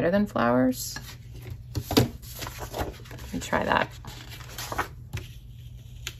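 A large paper page rustles as it is flipped over.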